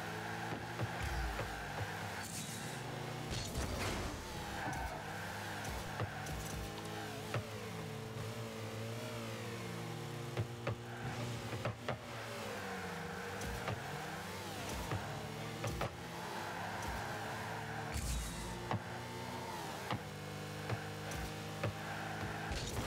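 Game car engines hum and rev steadily.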